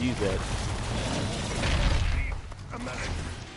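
A heavy gun fires rapid, booming shots.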